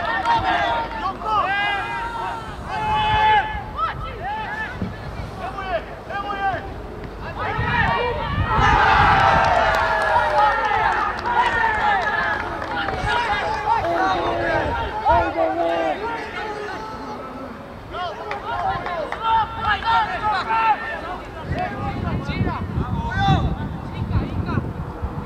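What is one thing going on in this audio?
Young men shout and call out across an open outdoor pitch.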